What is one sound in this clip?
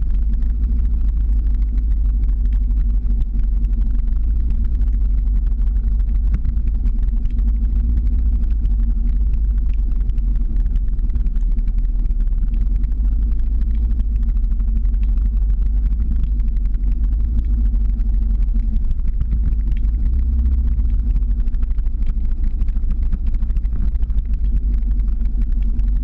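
Wind rushes loudly past a moving microphone outdoors.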